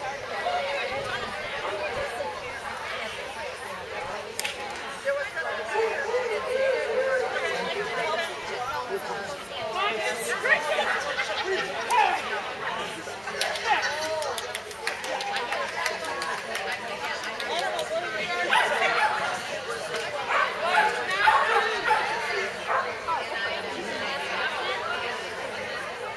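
A young woman calls out commands to a dog in a large echoing hall.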